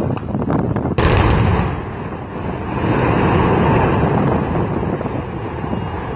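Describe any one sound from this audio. A loud explosion booms in the distance and rumbles away.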